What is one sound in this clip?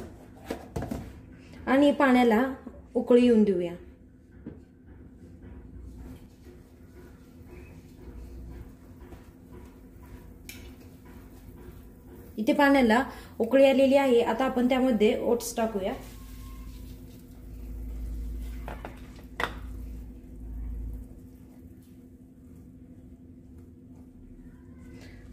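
A spoon stirs and scrapes in a pan of soup.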